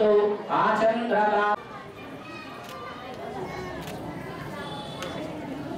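A crowd of people murmurs nearby.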